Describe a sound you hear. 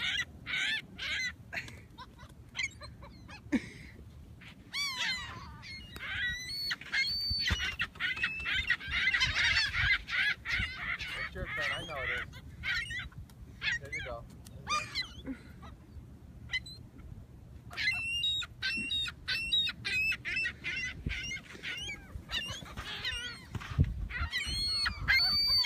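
Many seagulls squawk and cry close by.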